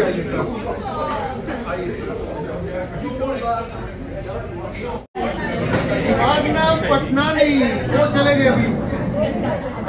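A crowd of people chatters in a room.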